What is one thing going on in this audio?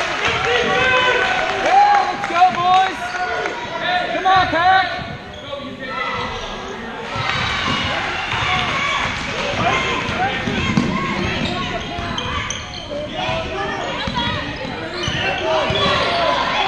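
Spectators chatter and call out nearby.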